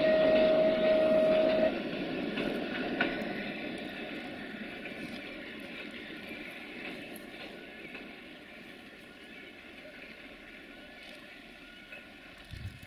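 A train rumbles along the track, moving away and slowly fading.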